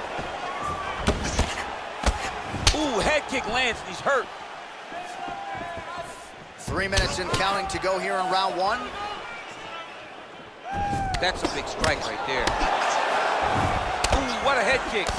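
Punches and kicks land on bodies with dull thuds.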